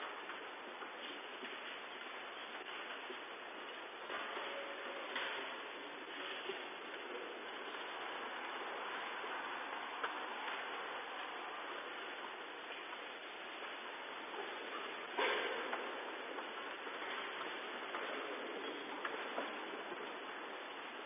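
A congregation of men and women murmurs and chatters in a large echoing hall.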